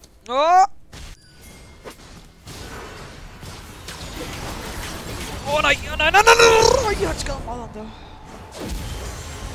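Magic spells blast and crackle in a fast battle.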